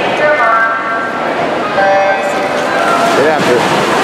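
Swimmers dive into the water with a splash.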